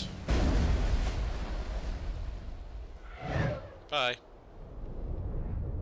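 Something plunges into water with a heavy splash.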